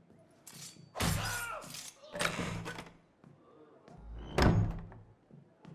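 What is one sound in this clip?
A heavy wooden chest lid creaks open.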